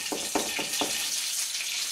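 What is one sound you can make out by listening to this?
A knife chops herbs on a cutting board with quick taps.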